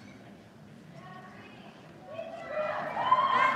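A choir begins to sing in a large echoing hall.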